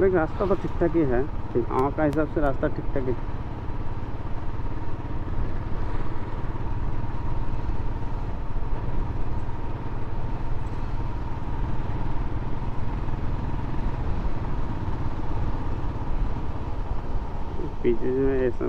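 A motorcycle engine hums steadily at low revs.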